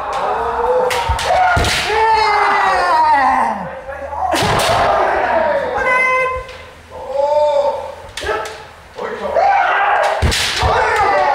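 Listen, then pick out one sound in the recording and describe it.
Bamboo kendo swords crack against protective armour.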